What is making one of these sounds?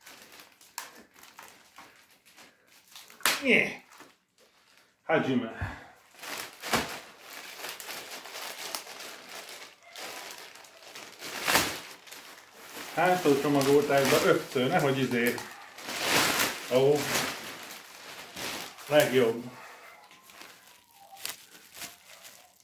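Plastic wrapping crinkles and rustles as a man pulls it off.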